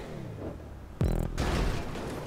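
A car lands with a heavy thump.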